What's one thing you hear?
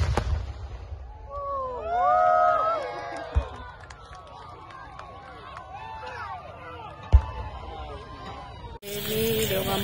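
A crowd cheers and whoops outdoors.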